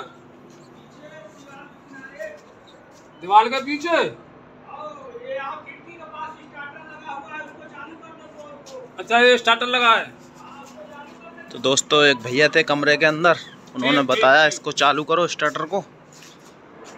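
An elderly man talks with animation close by.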